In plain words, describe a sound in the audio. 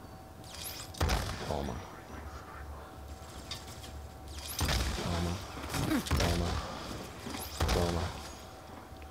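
Gunshots from a video game fire in short bursts.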